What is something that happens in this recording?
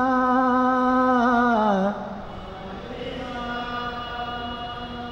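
An elderly man chants in long, held notes through a microphone.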